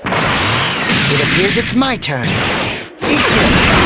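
Heavy punches thud in quick succession.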